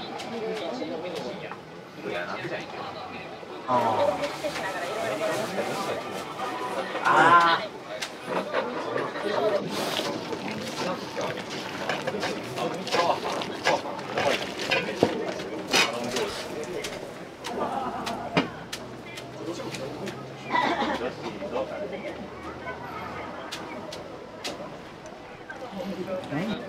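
A metal ladle clinks against bowls and a pot.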